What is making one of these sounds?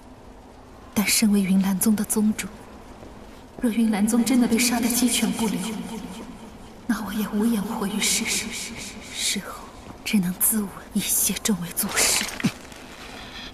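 A woman speaks slowly, close by.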